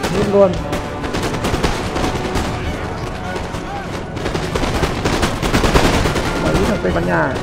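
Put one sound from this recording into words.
Musket volleys crackle and pop across a battlefield.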